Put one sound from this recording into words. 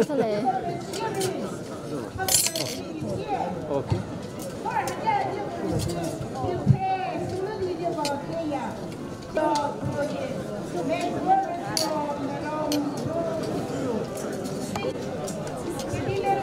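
Metal serving spoons clink against steel pots.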